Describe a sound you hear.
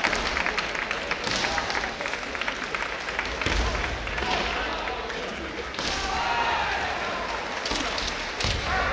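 Kendo fighters shout loudly.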